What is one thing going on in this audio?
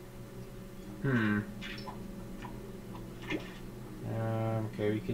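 Video game menu sounds chime and whoosh as options change.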